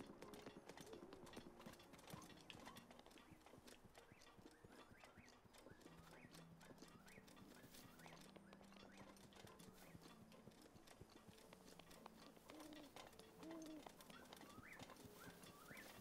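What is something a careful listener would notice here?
Light footsteps patter through grass.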